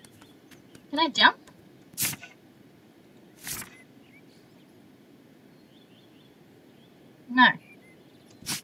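A young woman makes short vocal sounds close to a microphone.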